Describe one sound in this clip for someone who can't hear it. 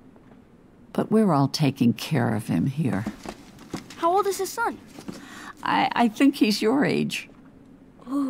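An elderly woman speaks warmly and calmly, close by.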